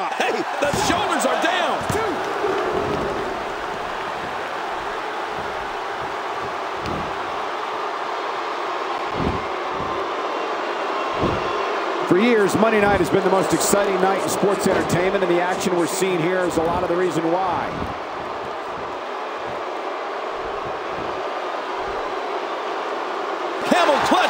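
Bodies thud heavily against a wrestling mat.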